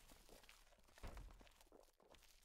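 A heavy wooden door swings open with a dull thud.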